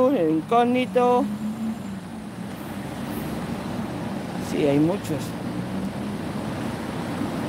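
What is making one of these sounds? Cars drive past on a nearby street.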